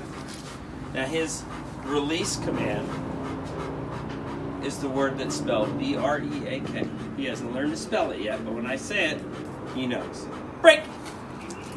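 A man speaks firmly nearby.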